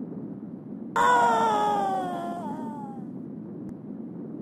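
A short cartoon sound effect slides downward in pitch.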